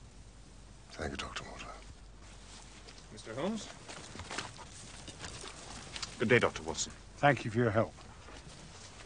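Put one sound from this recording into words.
An older man speaks briefly and politely.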